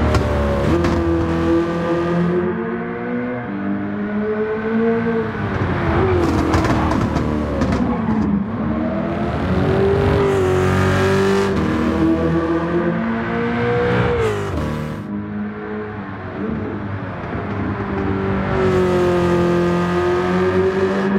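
A powerful car engine roars, rising and falling in pitch as it accelerates and shifts gears.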